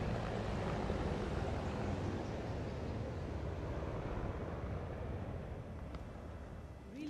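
Helicopters rumble overhead, then slowly fade.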